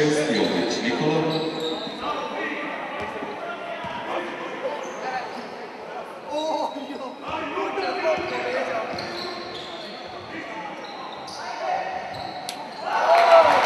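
Sneakers squeak on a hard floor in a large echoing hall.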